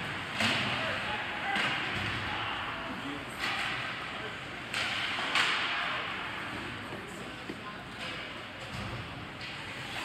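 Ice skates scrape and carve across the ice in a large echoing hall.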